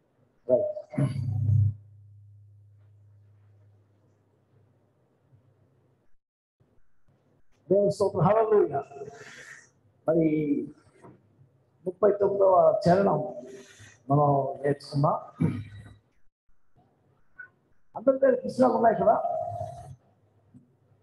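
An elderly man speaks or sings into a microphone, heard through an online call.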